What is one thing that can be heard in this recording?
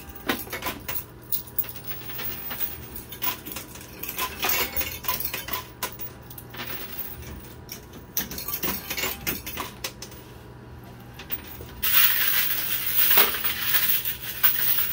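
Coins clink and clatter as a pusher slides them.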